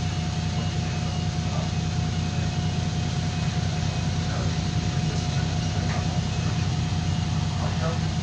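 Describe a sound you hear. An electric light-rail train rolls past over a level crossing.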